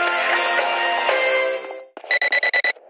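A short victory jingle plays.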